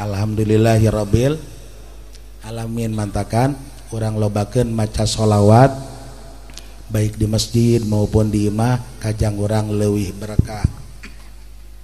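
An elderly man speaks with animation through a microphone, heard through loudspeakers.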